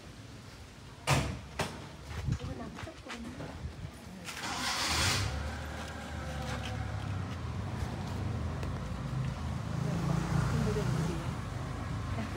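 Leaves rustle as they are brushed aside.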